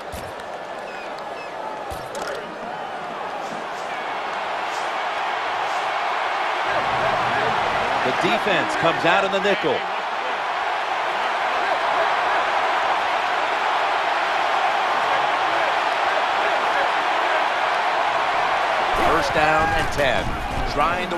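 A large stadium crowd roars steadily, growing louder.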